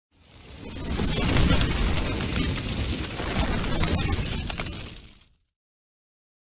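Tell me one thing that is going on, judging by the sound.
A fire roars in a burst of flames.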